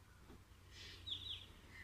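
A car alarm chirps briefly.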